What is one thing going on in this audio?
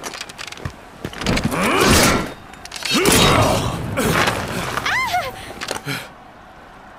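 Weapons clash and crash in a fight.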